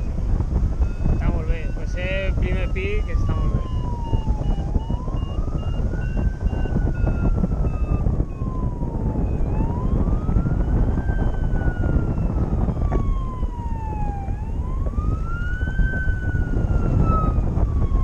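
Wind rushes loudly past a microphone outdoors.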